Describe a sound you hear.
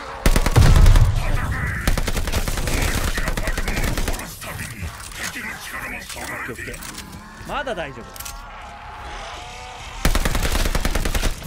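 An automatic rifle fires rapid, loud bursts.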